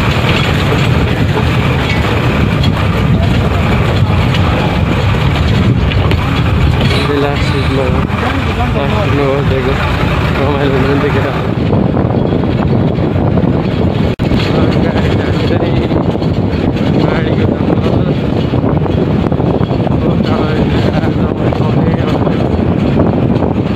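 Wind rushes past an open bus window.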